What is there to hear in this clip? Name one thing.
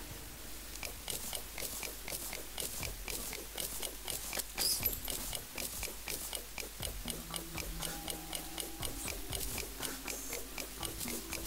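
A pickaxe chips at stone in quick, even taps.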